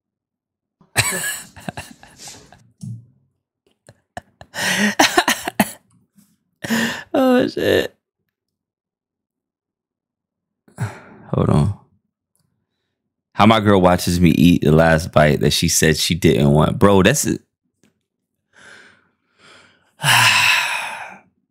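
A young man talks and laughs with animation close to a microphone.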